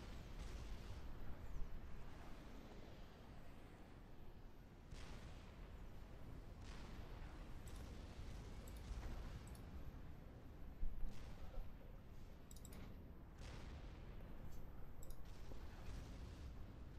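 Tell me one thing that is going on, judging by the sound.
Laser weapons zap and fire in rapid bursts.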